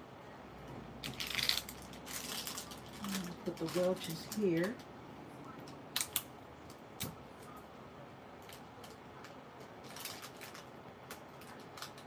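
Hands rustle and crinkle plastic snack packages.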